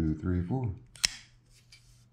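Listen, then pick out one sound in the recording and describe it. A folding knife blade snaps open with a sharp click.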